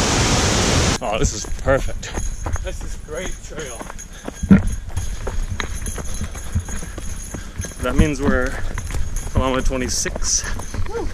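Footsteps thud and crunch on a dirt trail at a running pace.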